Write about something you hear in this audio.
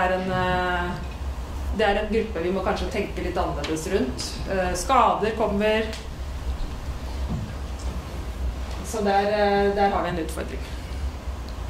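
A young woman speaks calmly through a microphone.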